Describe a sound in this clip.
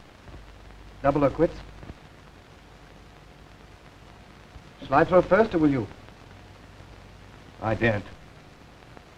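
A young man speaks in short, calm phrases nearby.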